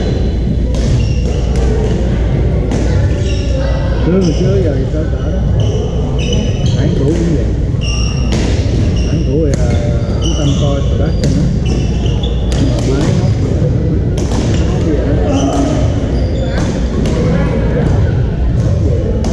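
Men talk and call out across the hall.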